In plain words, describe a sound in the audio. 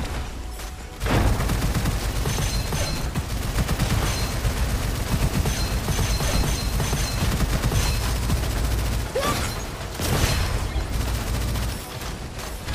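A game weapon fires in rapid bursts.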